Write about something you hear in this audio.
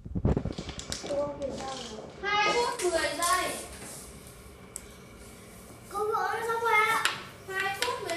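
A young woman speaks clearly nearby.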